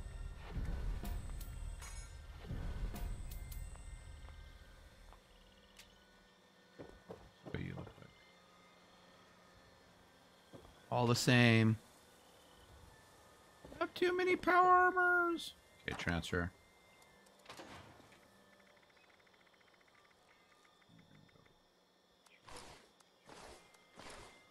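Short menu clicks and chimes sound as items are picked.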